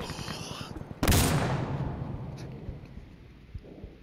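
A grenade bursts with a loud, sharp bang that slowly fades.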